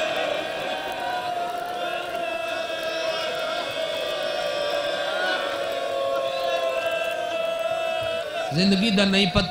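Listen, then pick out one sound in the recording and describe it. A large crowd of men chants and wails together.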